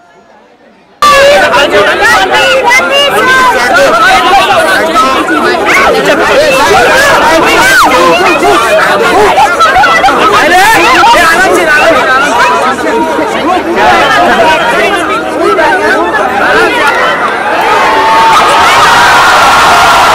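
A large crowd of men shouts and chatters excitedly close by.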